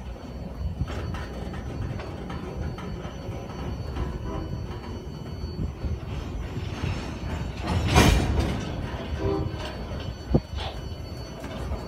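A freight train rolls slowly past close by, its wheels rumbling on the rails.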